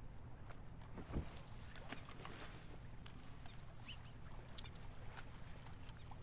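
A fishing rod swishes through the air as a line is cast.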